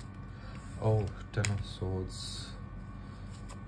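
A playing card is laid down onto other cards with a soft slap.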